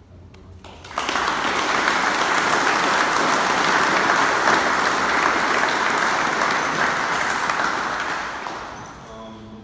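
A crowd applauds loudly in an echoing hall.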